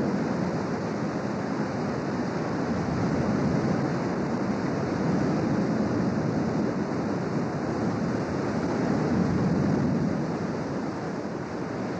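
Rushing white water roars and churns loudly.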